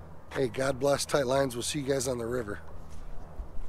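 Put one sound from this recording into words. A middle-aged man speaks calmly and close up, outdoors in light wind.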